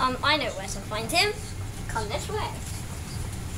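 A young boy speaks close by with animation.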